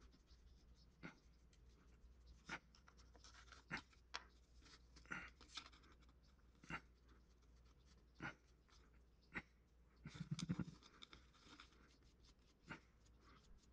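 Small metal tools tap and click on a wooden board.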